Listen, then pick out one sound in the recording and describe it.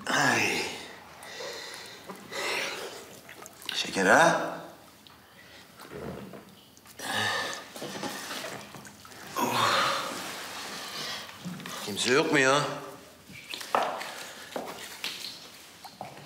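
A man groans and wails in distress, close by.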